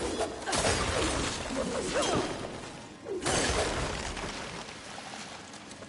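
A magic blast whooshes and crackles loudly.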